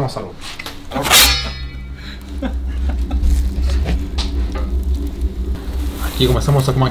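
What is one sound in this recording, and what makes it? A wood fire roars and crackles steadily in an oven.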